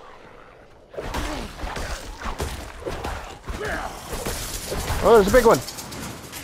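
Blows land with heavy thuds and clashes in a fight.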